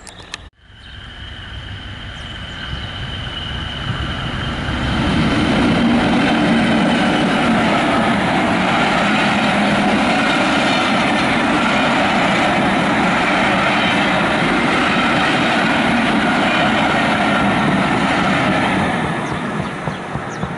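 A diesel train approaches and rumbles loudly past on the rails, then fades.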